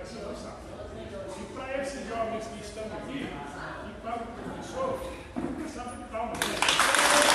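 An elderly man speaks loudly with animation in an echoing room.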